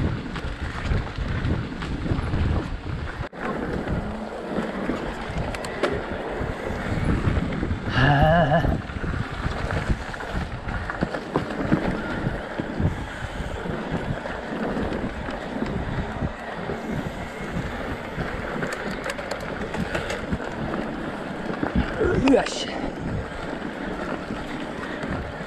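Bicycle tyres crunch and roll over a dirt trail.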